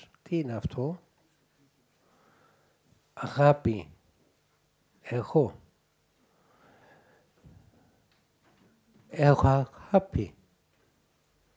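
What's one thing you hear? An elderly man speaks calmly into a microphone, in short bursts with pauses.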